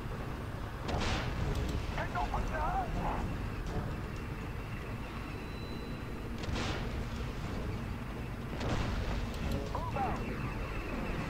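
Shells explode with heavy bangs.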